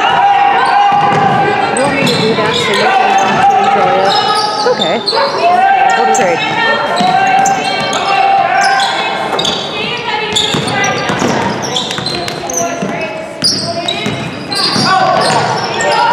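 A basketball bounces on a hard wooden floor in a large echoing gym.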